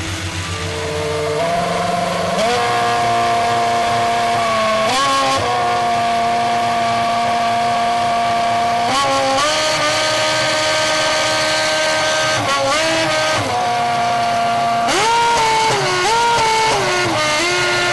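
A racing engine revs loudly at high pitch, its pitch jumping up and settling again and again.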